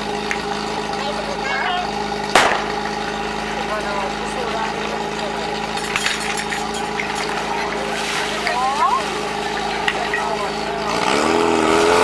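A portable fire pump engine idles.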